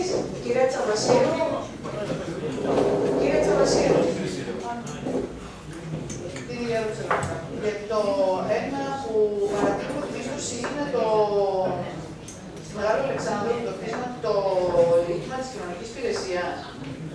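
A woman speaks steadily into a microphone in a large room with some echo.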